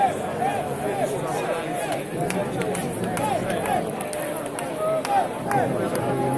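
A large crowd chatters and calls out all around, close by, outdoors.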